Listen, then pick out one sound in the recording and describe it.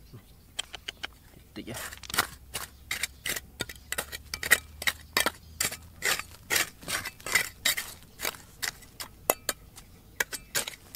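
A small metal trowel scrapes and digs into dry gravelly soil, close by.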